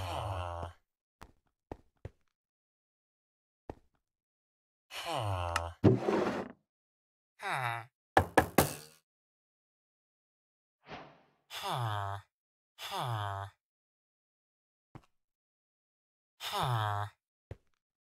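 A villager character mumbles in short nasal grunts, again and again.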